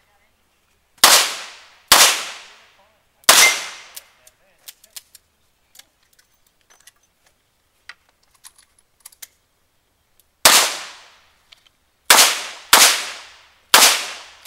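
A handgun fires loud single shots that ring out outdoors.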